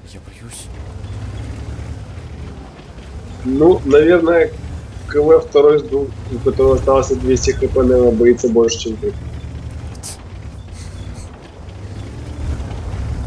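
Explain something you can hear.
A heavy tank engine rumbles steadily at low pitch.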